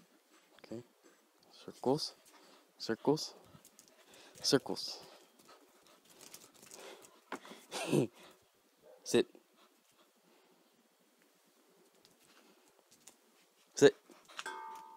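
A dog barks loudly and eagerly, close by.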